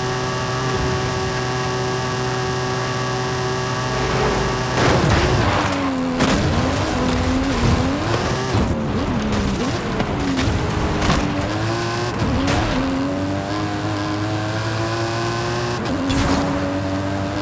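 A car engine roars at high speed, its pitch dropping and rising as it shifts and slows.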